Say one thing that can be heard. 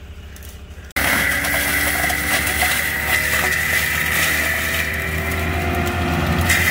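A forestry mulcher's engine roars steadily nearby.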